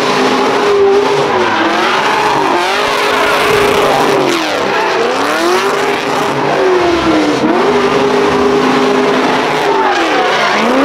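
A car engine roars and revs up and down loudly.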